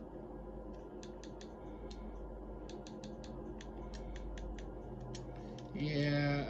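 Quick menu clicks tick from a television speaker.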